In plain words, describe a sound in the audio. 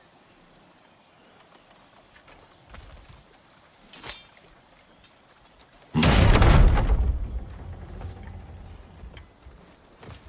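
Water laps gently against a wooden boat.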